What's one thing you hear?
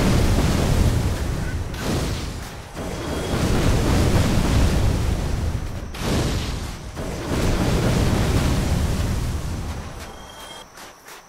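Fire roars and bursts loudly in repeated blasts.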